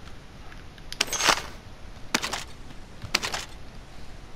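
Gear and weapons are picked up with short metallic clatters.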